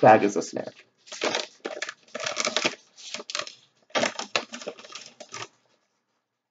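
A plastic snack bag crinkles in a man's hands.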